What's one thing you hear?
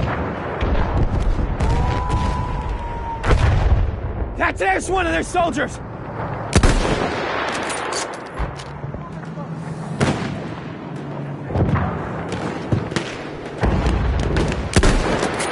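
Gunfire and explosions boom and rumble all around throughout.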